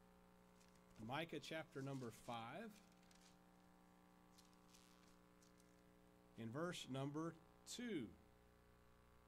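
A man speaks slowly and calmly through a microphone in a large echoing hall, with long pauses.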